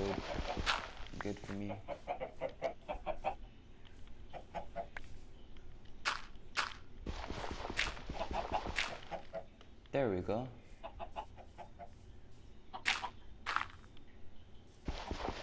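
Blocks of earth crunch as they are dug and placed.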